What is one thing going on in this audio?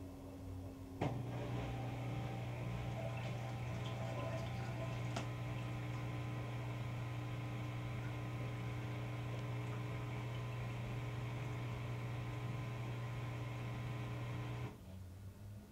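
A washing machine motor starts with a click and whines loudly, then cuts off.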